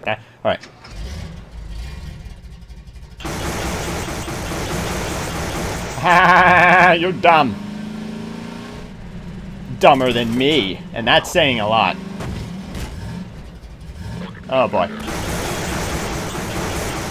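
A buggy engine starts and hums steadily as the buggy drives along a road.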